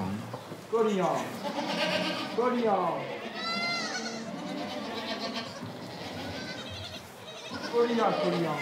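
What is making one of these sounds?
Young goats bleat loudly close by.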